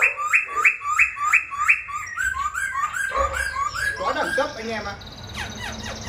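A caged bird sings loud, quick repeated whistling calls close by.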